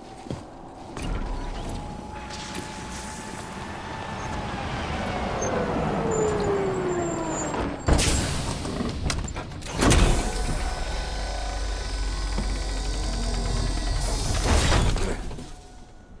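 A large vehicle engine rumbles and whines as it drives up.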